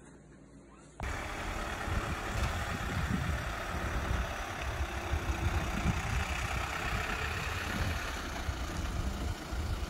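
A van engine rumbles as the van drives slowly by.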